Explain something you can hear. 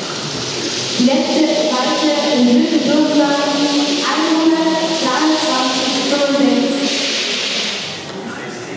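A young man speaks nearby in an echoing hall.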